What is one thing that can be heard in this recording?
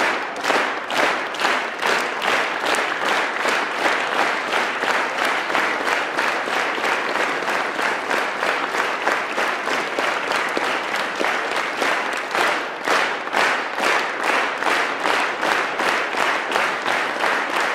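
An acoustic guitar strums.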